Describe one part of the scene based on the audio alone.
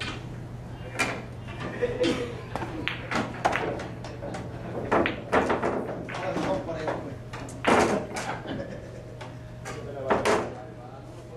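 A cue stick strikes a billiard ball with a sharp tap.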